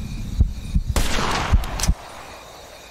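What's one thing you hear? A rifle shot cracks.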